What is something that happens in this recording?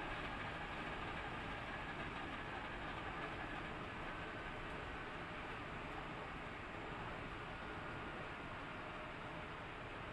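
A race car engine roars loudly at high speed, heard from on board.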